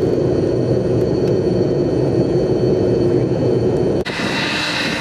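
A jet engine drones steadily from inside an aircraft cabin.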